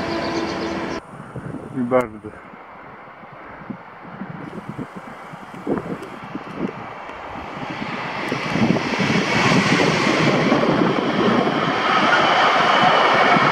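A freight train rumbles and clatters past on the tracks.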